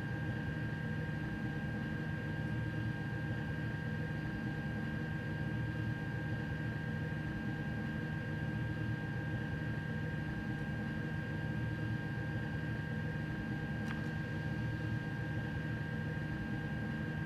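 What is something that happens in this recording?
A stationary train hums steadily with a constant high whine.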